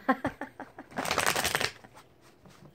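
Playing cards riffle as they are shuffled.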